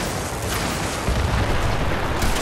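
A blast booms nearby.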